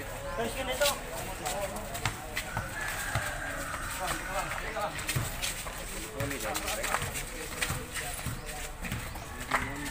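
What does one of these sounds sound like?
A ball thumps off bare feet.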